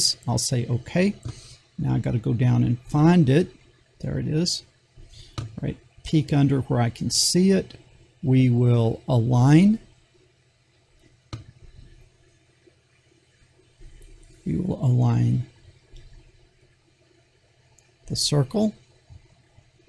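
An older man talks calmly into a close microphone, with pauses.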